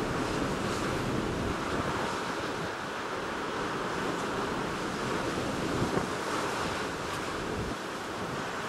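Wind roars steadily over open water.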